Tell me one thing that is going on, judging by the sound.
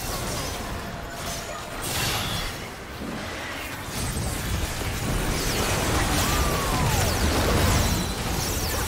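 Video game spells and weapon hits crackle and clash in a fast battle.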